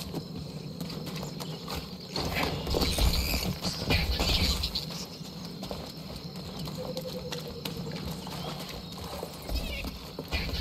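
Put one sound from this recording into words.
Footsteps thud quickly on grass and dirt.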